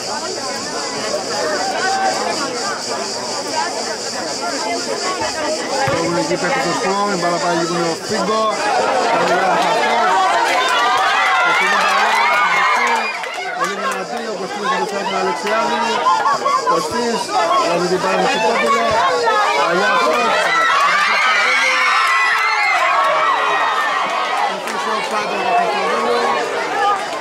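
Footballers shout and call to each other across an open pitch.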